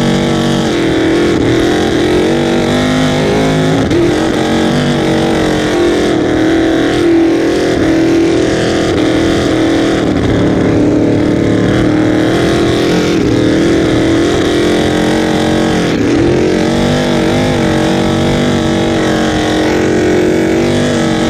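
A powerful boat engine roars loudly and steadily, its pitch wavering as the throttle shifts.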